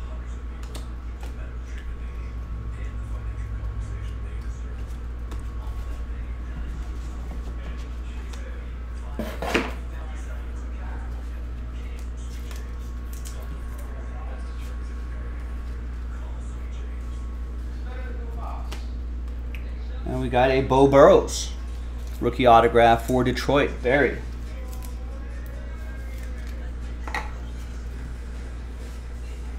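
Trading cards riffle and flick in a man's hands.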